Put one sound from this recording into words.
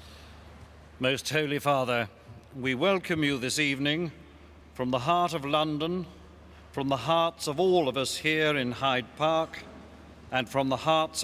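An elderly man speaks calmly into a microphone through loudspeakers in a large echoing hall.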